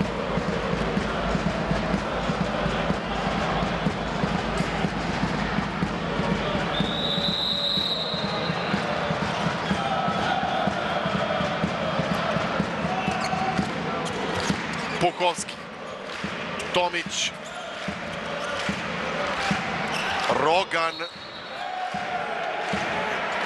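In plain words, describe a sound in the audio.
A large crowd chants and cheers loudly in an echoing hall.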